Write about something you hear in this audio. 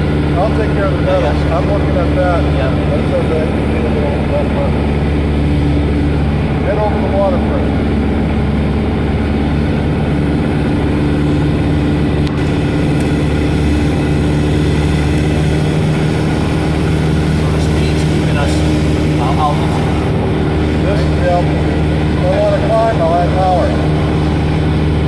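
A man speaks into a headset microphone over the loud engine noise.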